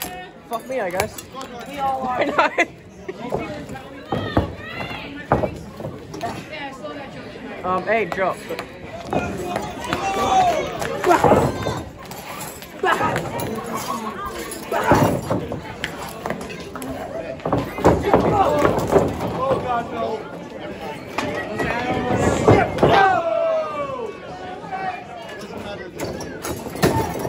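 Wrestlers' bodies slap and thud against each other.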